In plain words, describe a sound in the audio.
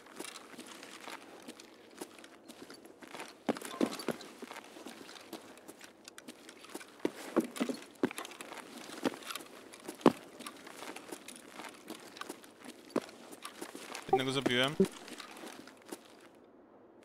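Footsteps tread and scuff on a hard floor.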